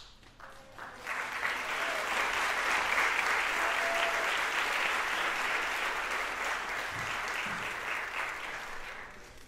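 An audience applauds in a theatre.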